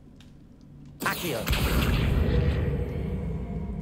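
A magical spell bursts out with a loud rushing whoosh.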